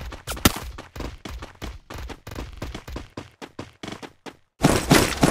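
Footsteps thud quickly over grass.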